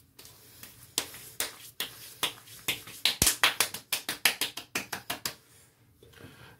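Hands pat and slap cheeks.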